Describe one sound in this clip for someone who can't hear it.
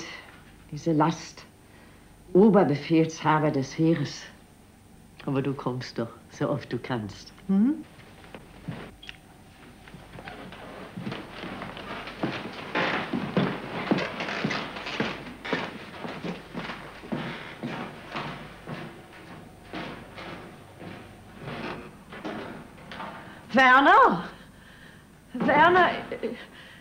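An elderly woman speaks softly, close by.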